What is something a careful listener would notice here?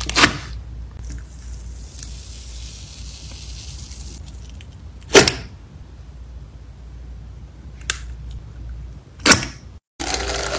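Soft slime squishes and squelches as a metal scoop presses into it.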